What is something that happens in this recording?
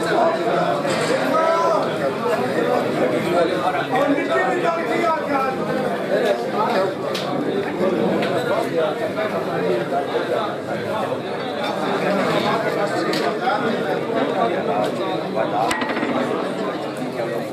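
A crowd of men chatters.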